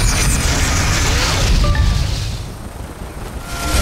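A helicopter drones overhead.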